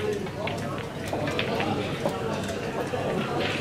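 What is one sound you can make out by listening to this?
Pool balls click together.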